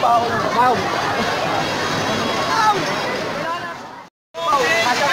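A crowd of young people chatters nearby.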